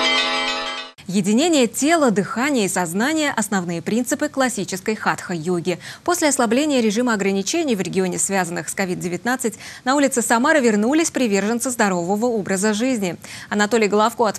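A young woman speaks calmly and clearly into a microphone, like a newsreader.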